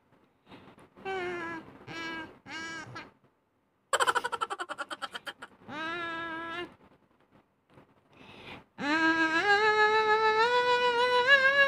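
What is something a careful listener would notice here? A young woman sings a slow melody close to the microphone.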